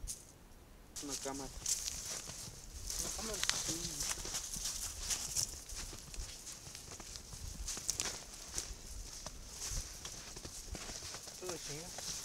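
Footsteps crunch through snow close by.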